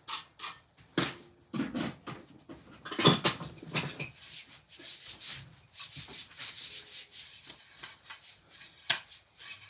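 A man thumps a wooden stick against things.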